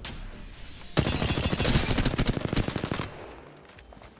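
A rapid burst of automatic gunfire rattles close by.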